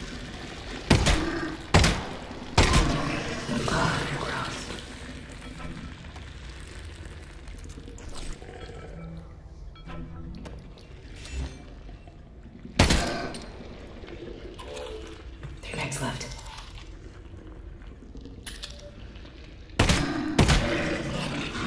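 A pistol fires several sharp, loud shots.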